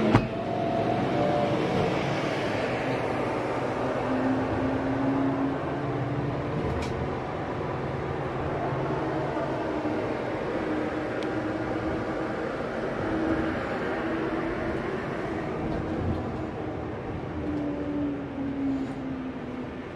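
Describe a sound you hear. A bus engine hums and rumbles steadily inside the vehicle.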